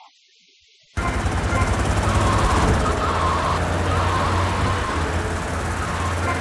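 A tank engine rumbles heavily and steadily.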